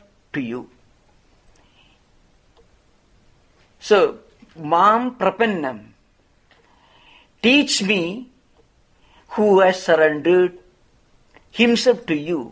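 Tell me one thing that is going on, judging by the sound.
A middle-aged man speaks calmly and slowly into a close microphone, with short pauses.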